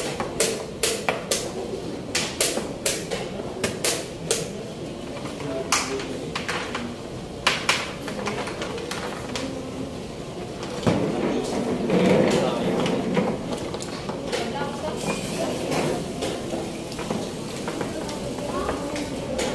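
Voices murmur in a busy room nearby.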